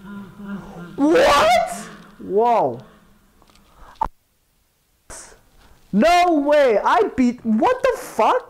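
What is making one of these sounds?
A young woman shouts and cries out excitedly into a close microphone.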